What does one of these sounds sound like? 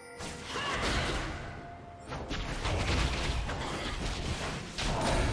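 Magic spells burst and crackle in a fantasy battle.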